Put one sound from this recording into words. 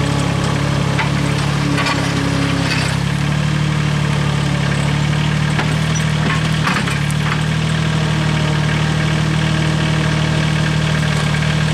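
Metal forks clank and scrape against the ground.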